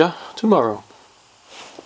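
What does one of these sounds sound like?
A young man speaks briefly and calmly, close by.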